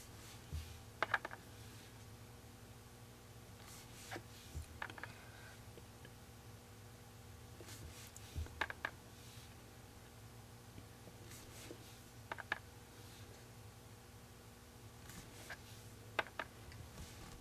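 A dotting tool taps lightly on a hard painted surface, in short clicks every few seconds.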